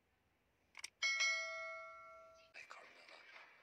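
A chime rings out.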